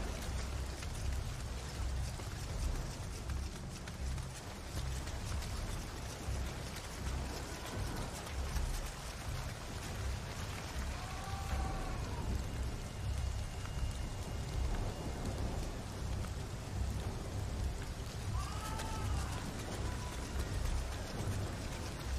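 Footsteps thud on stone as a figure runs.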